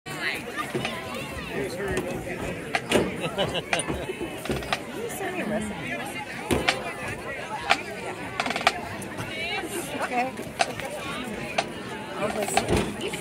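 A crowd of men and women chatters close by outdoors.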